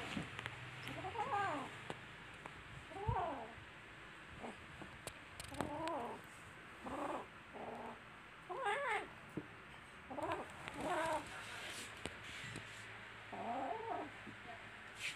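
Kittens meow and mewl close by.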